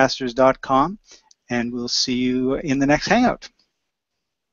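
A middle-aged man speaks calmly into a close microphone over an online call.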